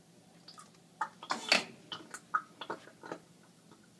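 A gas ignites with sharp pops and bangs inside a glass tube.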